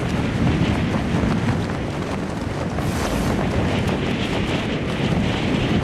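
Wind rushes steadily past a figure gliding down through the air.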